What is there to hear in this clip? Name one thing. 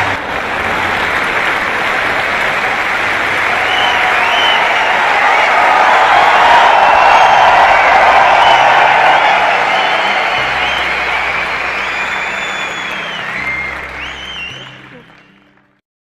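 A crowd applauds with steady, lively clapping that fades away at the end.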